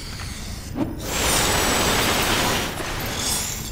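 A magic energy beam blasts with a loud, rushing crackle.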